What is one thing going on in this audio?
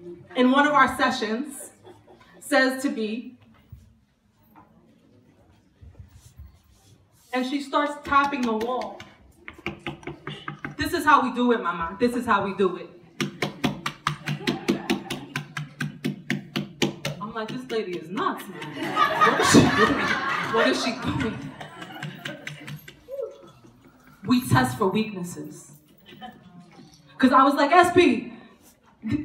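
A woman speaks with animation into a microphone, heard over a loudspeaker in a large room.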